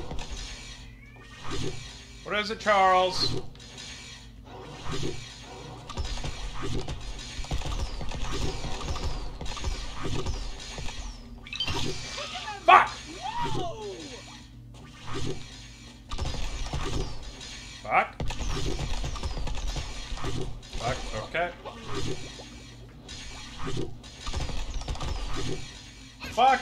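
Video game sound effects pop and burst.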